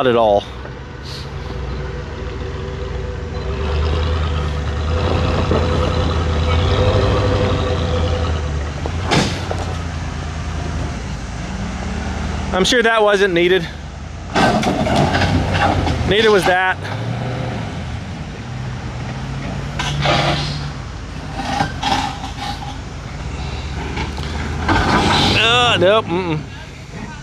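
A truck engine idles and revs as it crawls slowly over rocks.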